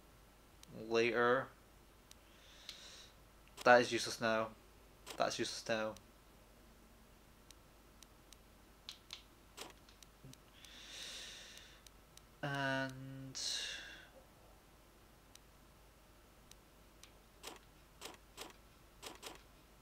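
Short menu clicks tick as a list scrolls.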